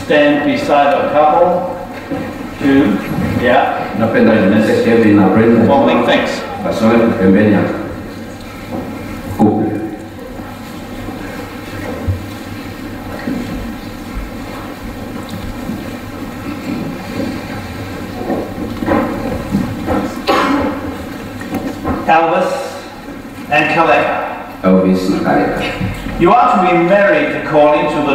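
A middle-aged man speaks calmly and clearly in an echoing hall.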